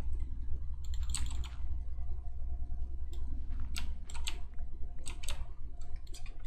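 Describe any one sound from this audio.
Gravel blocks crunch as they are placed down one after another.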